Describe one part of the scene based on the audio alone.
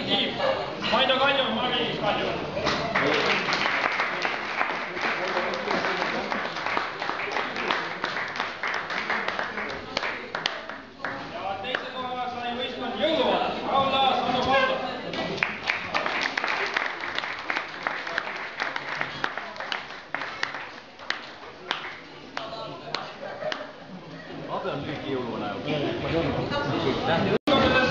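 A crowd of people chatter in a busy room.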